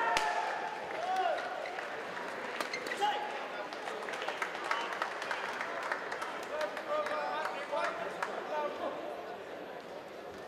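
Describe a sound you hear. A crowd in a large echoing hall murmurs and cheers.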